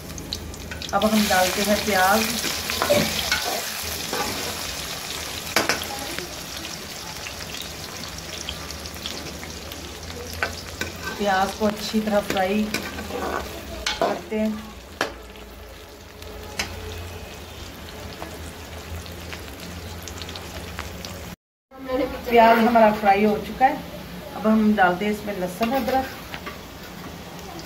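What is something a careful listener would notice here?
Onions sizzle and crackle in hot oil in a pan.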